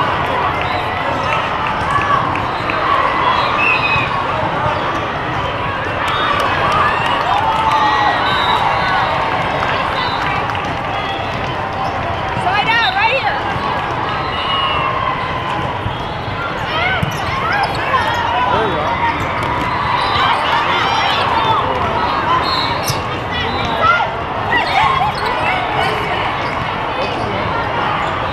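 A large crowd chatters steadily in a big echoing hall.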